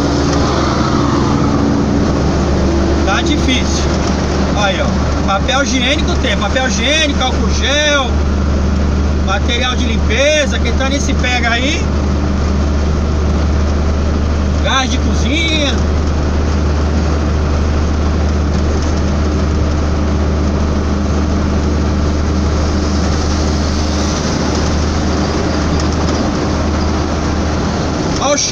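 A truck engine drones steadily from inside the cab.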